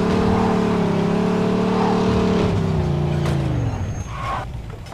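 A car engine hums low and winds down.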